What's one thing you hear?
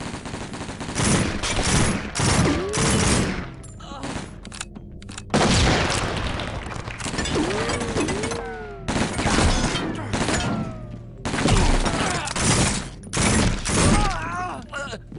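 A submachine gun fires rapid bursts of shots nearby.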